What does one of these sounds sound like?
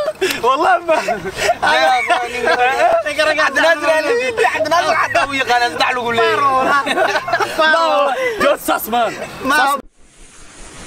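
Young men laugh loudly close by.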